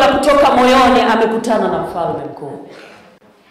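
A woman speaks loudly and with animation into a microphone, heard through loudspeakers in an echoing hall.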